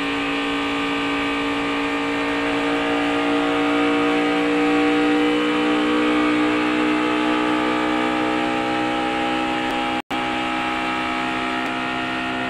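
A race car engine roars loudly at high speed, its pitch slowly rising and falling.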